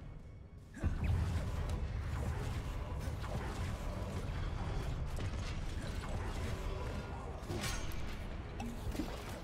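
A deep rumble of combat effects fills the space.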